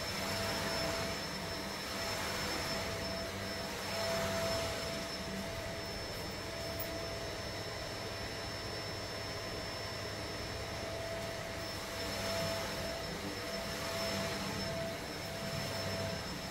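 A carpet cleaning machine hums steadily nearby.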